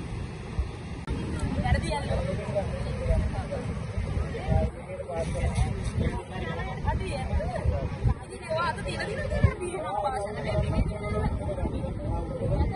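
Young people talk among themselves outdoors.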